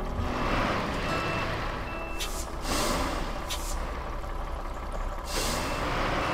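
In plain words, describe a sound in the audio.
A river rushes nearby.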